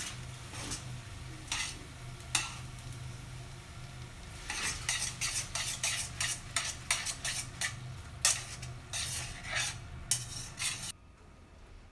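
Noodles sizzle and hiss in a hot pan.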